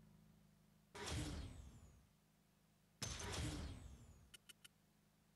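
Swooshing effects sweep past as race results pop up.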